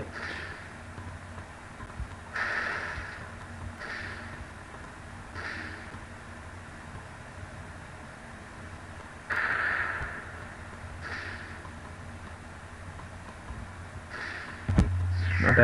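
Soft electronic bursts pop now and then.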